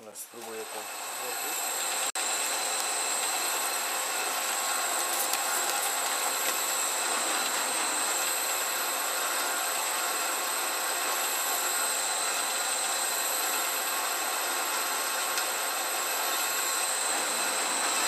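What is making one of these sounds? A drill press whirs steadily as it bores into metal.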